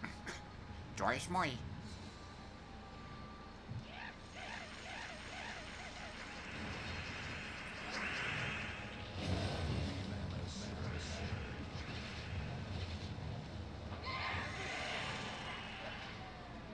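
Magical chimes and bursts of game sound effects ring out.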